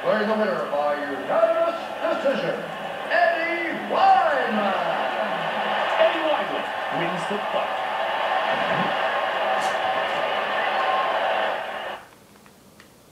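A video game plays through a television speaker.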